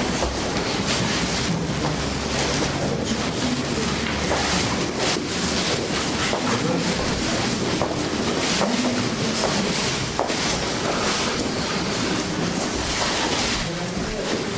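A crowd of men and women chatter in a room.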